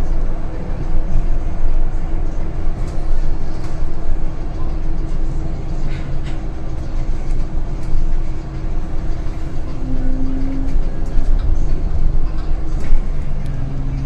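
Bus windows and fittings rattle with small knocks.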